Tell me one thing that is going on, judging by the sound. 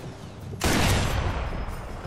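A rifle shot cracks loudly.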